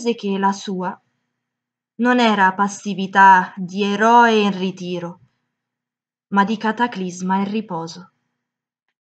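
A young woman speaks calmly and closely, in short bursts.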